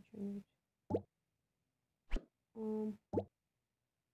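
Short game chimes and taps sound as options are picked.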